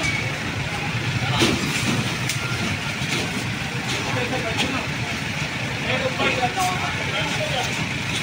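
Wooden boards knock and scrape as men load them onto a truck.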